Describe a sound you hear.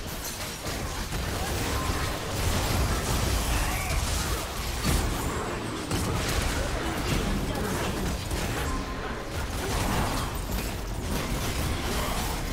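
Magic blasts and impacts crackle and burst rapidly in a fantasy battle.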